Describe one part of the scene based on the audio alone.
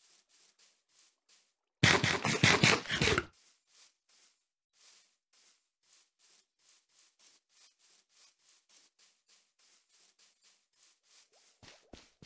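Footsteps patter steadily over grass.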